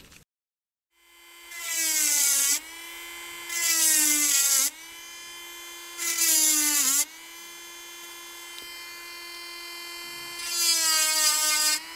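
A small rotary tool whines at high speed, its pitch dipping as it grinds into wood.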